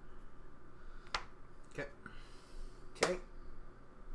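Small plastic pieces click and tap on a tabletop.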